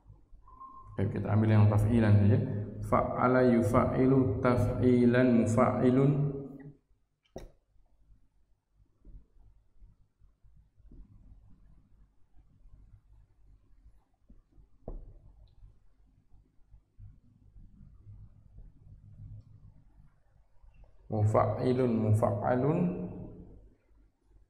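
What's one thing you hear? A man speaks calmly through a headset microphone.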